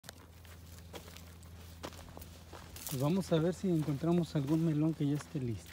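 Footsteps crunch on dry grass and stalks.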